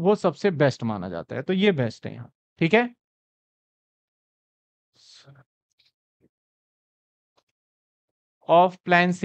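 A man speaks with animation into a close microphone, pausing briefly.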